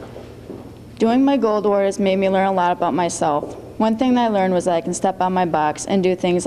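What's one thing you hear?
A young woman speaks calmly through a microphone.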